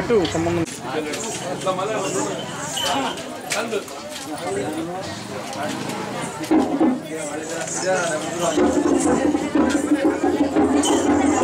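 A crowd of women chatters nearby.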